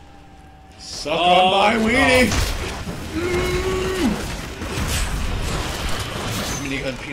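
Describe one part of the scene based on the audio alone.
Fantasy battle sounds clash and crackle with magic blasts.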